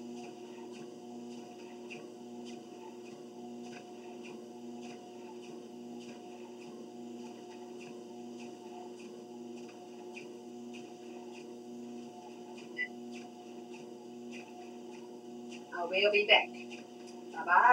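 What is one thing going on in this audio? Footsteps thump in a steady rhythm on a treadmill belt.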